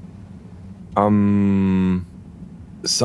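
A man murmurs a hesitant sound.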